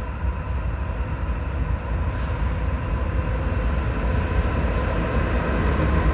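A train rumbles in the distance, growing slowly louder as it approaches.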